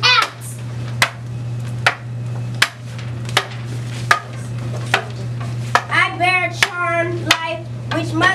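Wooden sticks clack together sharply.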